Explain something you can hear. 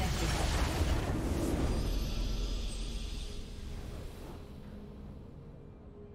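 A triumphant victory fanfare swells and then fades.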